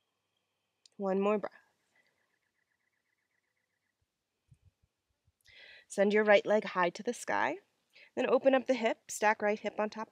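A young woman speaks calmly and clearly, close to a microphone.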